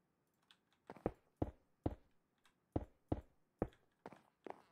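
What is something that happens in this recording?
Blocks are placed with short, solid knocks.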